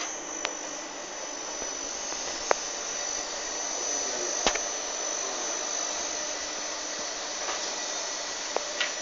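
A cooling fan in an electrical unit whirs steadily.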